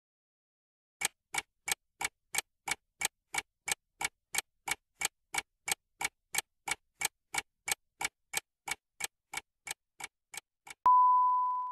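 A countdown clock ticks steadily and quickly.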